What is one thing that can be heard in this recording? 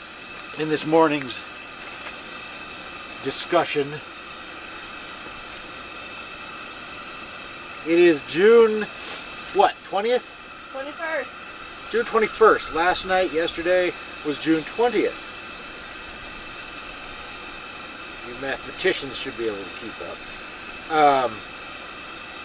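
A middle-aged man talks calmly close by, outdoors.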